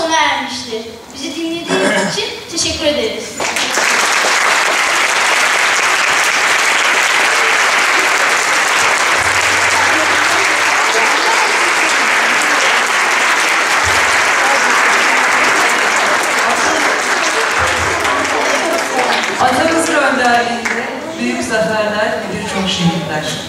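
A large children's choir sings in a big hall.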